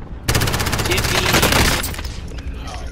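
A rifle fires in a rapid burst, close by.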